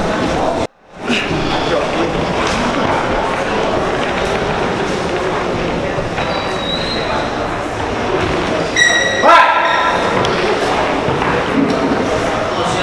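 A man speaks loudly in an echoing hall.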